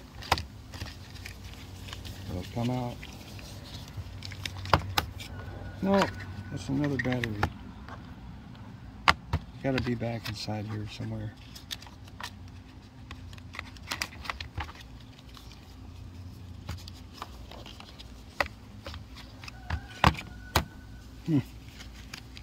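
Plastic clicks and taps as a small battery holder is handled.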